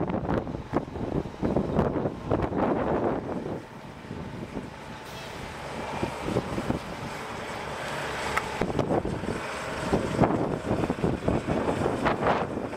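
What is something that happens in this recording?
A truck's diesel engine rumbles as the truck drives slowly.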